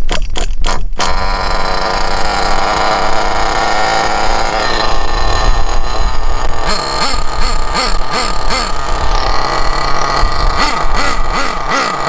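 A small nitro engine runs loudly with a buzzing whine.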